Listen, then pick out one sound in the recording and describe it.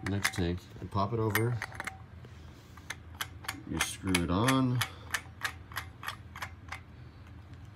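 Metal fittings click and clank against a gas cylinder.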